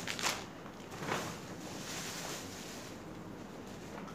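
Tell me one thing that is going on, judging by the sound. A fabric bag rustles as things are packed into it.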